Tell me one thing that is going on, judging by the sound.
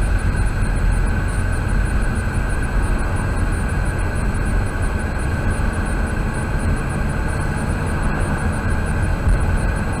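A car engine hums steadily as tyres roll over the road, heard from inside the car.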